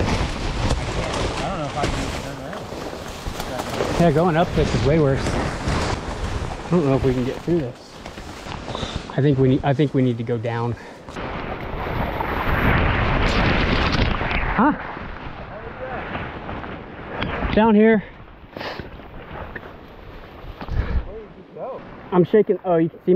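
A man speaks up close in short bursts.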